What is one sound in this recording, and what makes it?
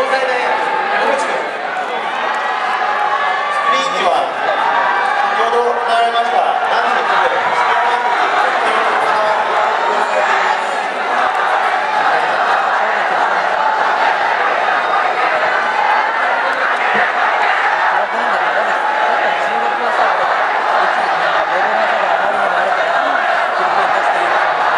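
A crowd of spectators cheers and shouts throughout.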